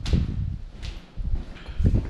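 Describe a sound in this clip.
Footsteps crunch on a debris-strewn floor.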